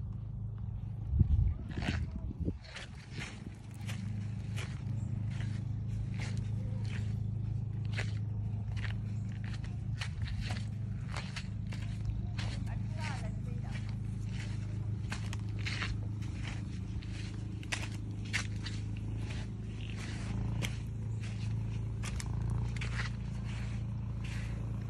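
Footsteps crunch steadily over rough rock and then sand.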